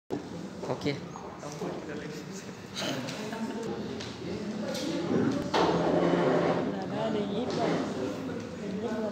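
A man speaks calmly through a microphone and loudspeaker in a large echoing hall.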